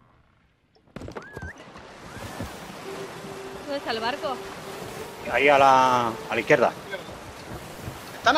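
Waves wash against a wooden ship at sea.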